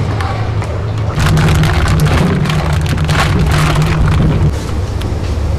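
A plastic bag crinkles and rustles as it is emptied.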